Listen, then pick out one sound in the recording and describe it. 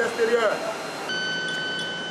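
A man speaks into a two-way radio.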